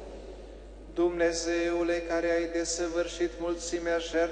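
A man chants in a steady sung voice through a microphone, echoing in a large hall.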